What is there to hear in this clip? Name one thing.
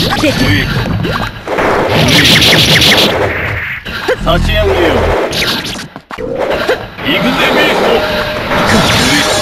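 Sharp hits and slashes crack in quick bursts.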